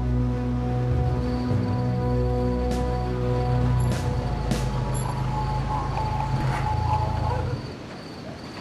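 A car engine hums as a car drives up.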